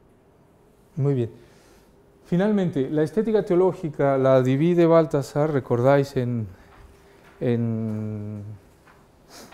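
A middle-aged man speaks through a clip-on microphone, calmly lecturing.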